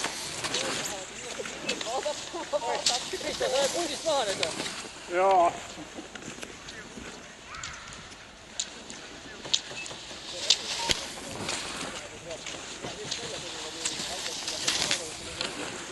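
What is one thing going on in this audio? Skis swish and scrape over snow as skiers pass close by.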